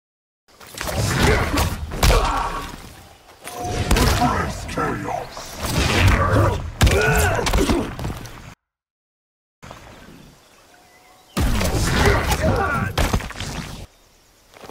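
Fighting video game attacks land with heavy thuds and whooshes.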